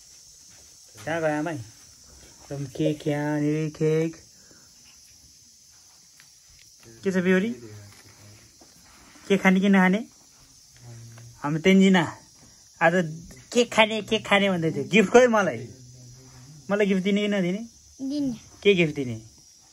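A young girl talks close by in short bursts.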